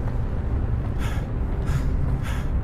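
Slow footsteps thud on a hard floor.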